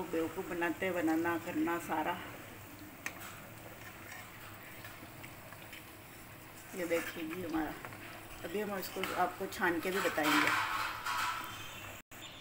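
Hot oil sizzles and bubbles steadily in a pan.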